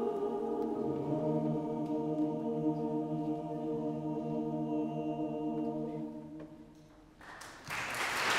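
A large choir holds a sung chord that echoes in a vast hall and fades away.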